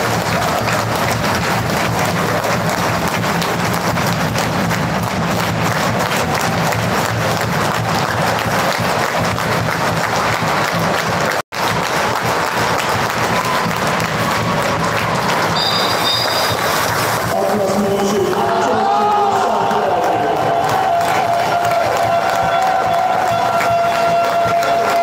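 A crowd of spectators cheers and chatters loudly in a large echoing hall.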